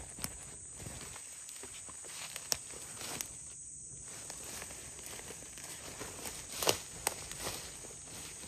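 Leafy plants rustle as someone walks through them.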